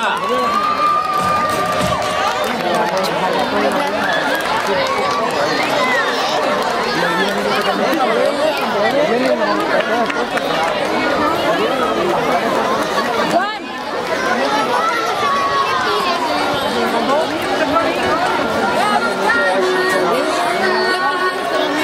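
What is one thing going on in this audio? A crowd of children and adults chatters and calls out loudly nearby.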